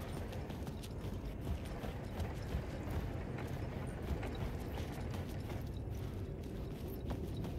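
Footsteps tread slowly over a hard, littered floor.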